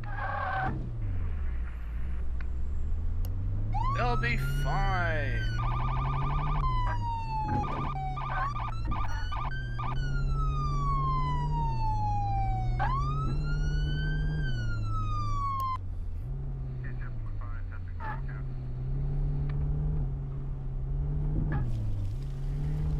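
A car engine revs up and drops as gears change.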